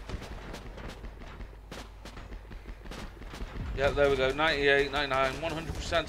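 Gunshots crack rapidly in quick bursts.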